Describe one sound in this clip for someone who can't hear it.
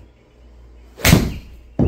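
A golf club strikes a ball with a sharp crack.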